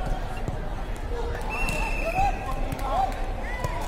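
A volleyball is struck with a dull thump.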